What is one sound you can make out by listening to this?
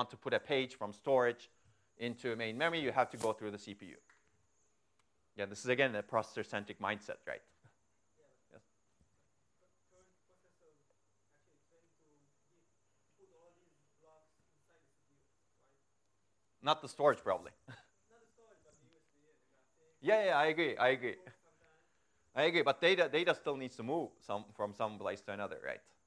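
A man lectures through a microphone in a large room, speaking calmly with pauses.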